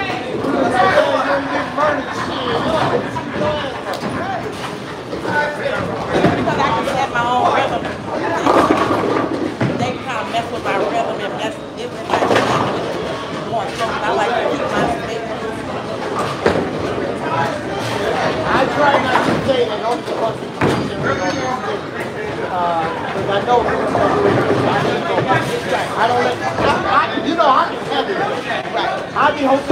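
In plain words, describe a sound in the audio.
Several men talk with animation close by in a large echoing hall.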